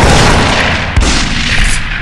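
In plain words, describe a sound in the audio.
A shotgun fires with a loud blast.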